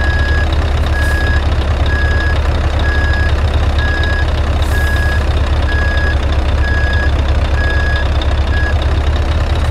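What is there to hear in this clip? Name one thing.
A reversing alarm beeps at an even pace.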